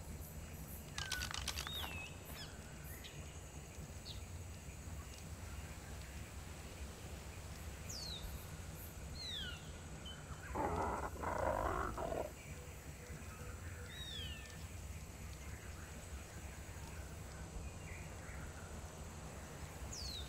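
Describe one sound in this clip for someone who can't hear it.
Birds chirp in short, high calls.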